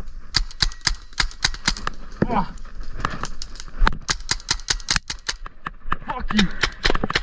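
A paintball gun fires in rapid bursts of sharp pops close by.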